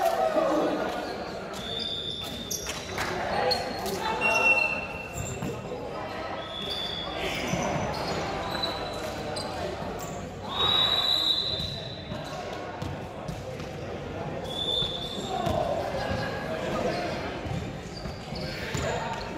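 A volleyball is struck with thuds that echo in a large hall.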